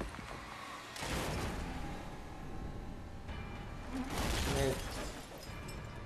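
A vehicle crashes and tumbles with loud metallic bangs.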